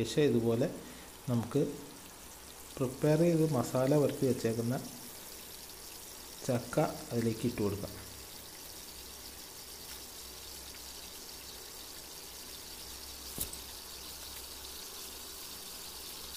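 Oil sizzles softly in a pan.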